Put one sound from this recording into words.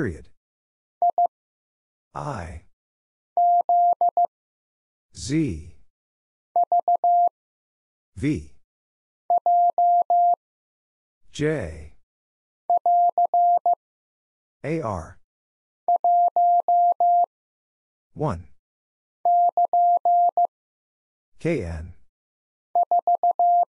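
Morse code beeps tap out in short bursts of a steady tone.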